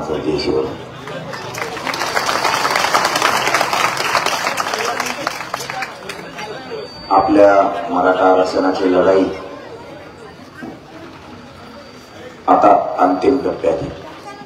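A man speaks loudly through a microphone and loudspeaker, outdoors.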